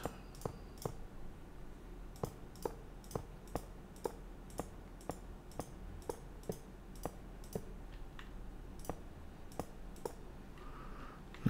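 Blocks are placed one after another with soft, quick clicks.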